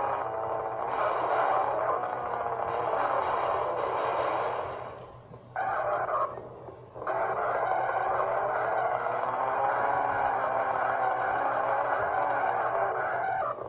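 A racing car engine roars and revs through small speakers.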